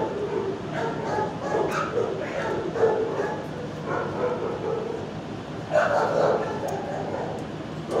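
A dog sniffs.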